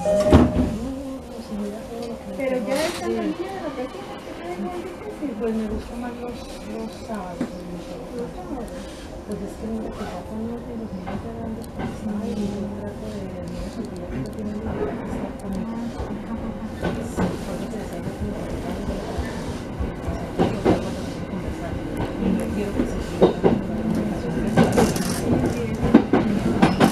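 An electric train's motor whines and hums as the train pulls away.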